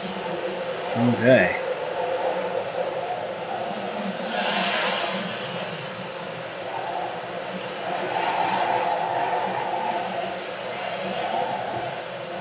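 Wind whooshes steadily.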